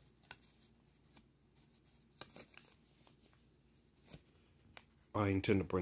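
Paper rustles and crinkles softly as it is handled.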